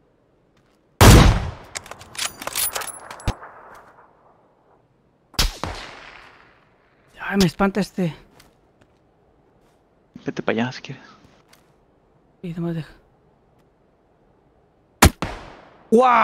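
Rifle shots crack loudly, with echoes trailing off.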